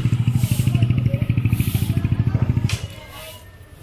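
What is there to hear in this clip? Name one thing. A motorcycle engine rumbles close by, then stops suddenly.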